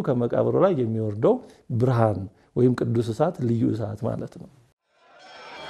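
A middle-aged man speaks calmly and with feeling into a close microphone.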